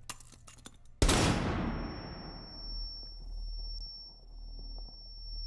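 A loud bang goes off and rings away slowly.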